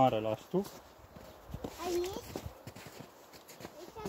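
Footsteps crunch in snow close by.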